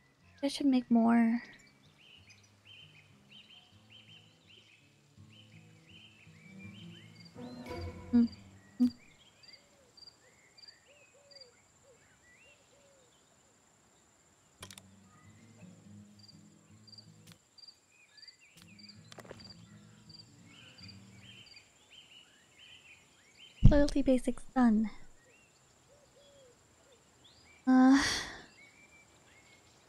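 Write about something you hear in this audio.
Soft, gentle game music plays.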